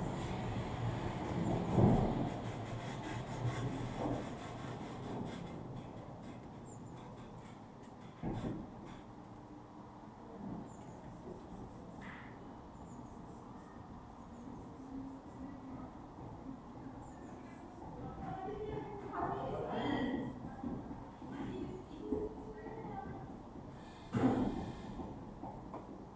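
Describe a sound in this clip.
A funicular car rumbles slowly along its track.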